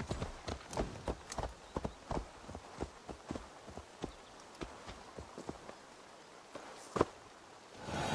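Horse hooves clop steadily on soft ground.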